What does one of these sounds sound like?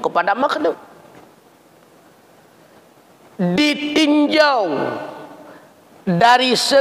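A middle-aged man speaks with animation into a microphone, in an echoing room.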